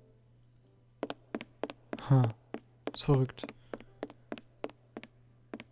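Footsteps thud steadily on a wooden floor in a large echoing hall.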